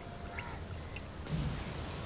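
Oil pours into a pan.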